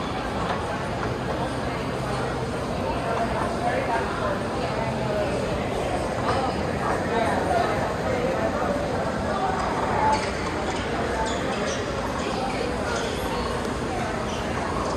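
A crowd of adults chatters in a murmur in a large, echoing hall.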